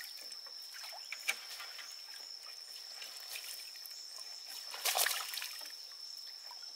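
Water drips and splashes beside a boat.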